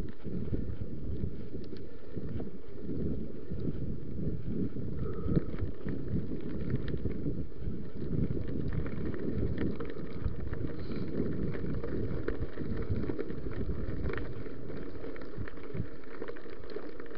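Wind rumbles loudly across a microphone.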